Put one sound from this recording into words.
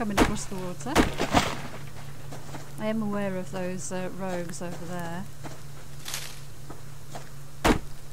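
An axe chops into a tree trunk with sharp knocks.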